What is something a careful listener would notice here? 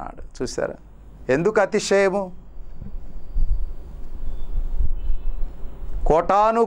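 A middle-aged man speaks calmly and close into a clip-on microphone, with pauses.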